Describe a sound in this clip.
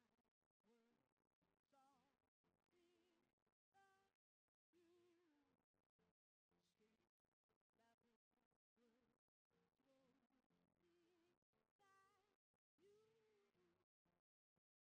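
An electric guitar plays a melody.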